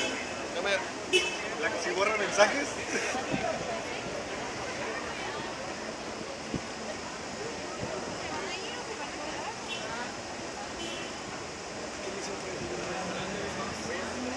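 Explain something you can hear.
A crowd of people chatters outdoors on a busy street.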